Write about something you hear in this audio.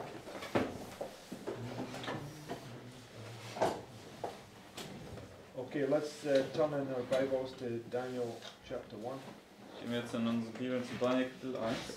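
Book pages rustle as a man leafs through them.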